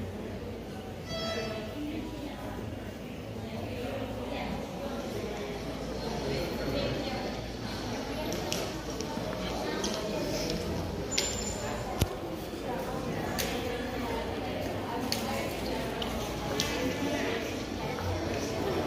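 A crowd of men and women murmurs in a large echoing hall.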